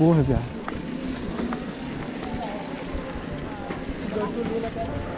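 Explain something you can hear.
A bicycle rattles softly as it rides over bumps.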